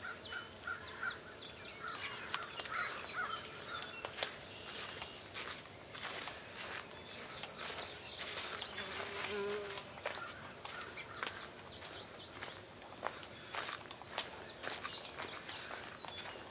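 Footsteps crunch steadily on a dirt path strewn with leaves.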